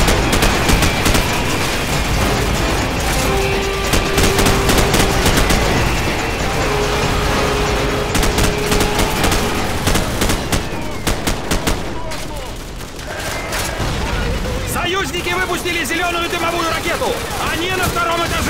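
Rapid gunfire rattles in bursts close by.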